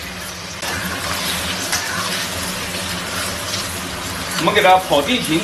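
Eggs sizzle in hot oil in a wok.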